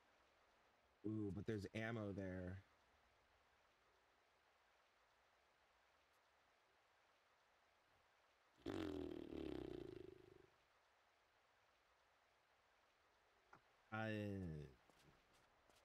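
A young man speaks into a close microphone in short, casual bursts.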